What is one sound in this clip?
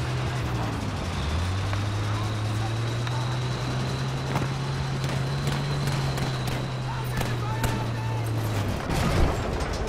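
A tank engine rumbles steadily as the tank rolls along.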